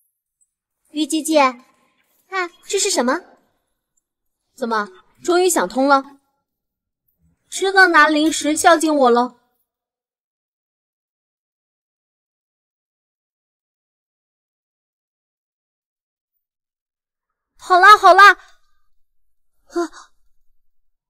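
A young girl speaks in a bright, playful voice.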